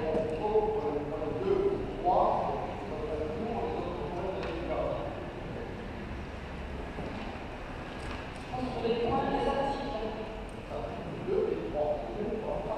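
A man speaks calmly over a microphone in a large echoing hall.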